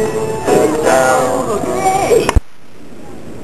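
Young children chatter and shout close by.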